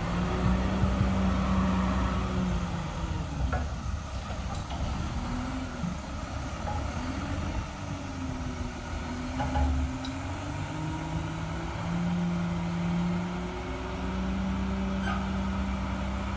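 A garbage truck engine rumbles and revs nearby, its pitch rising and falling.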